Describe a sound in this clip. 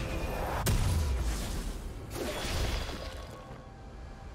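Fantasy spell effects whoosh and crackle in bursts.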